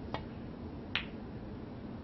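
A snooker ball clicks against another ball.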